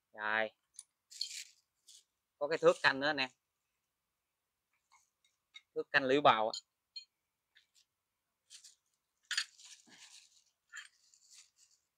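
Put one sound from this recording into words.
Small metal parts clink and rattle.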